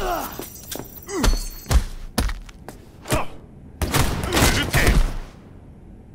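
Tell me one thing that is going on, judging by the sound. A man grunts and groans in pain.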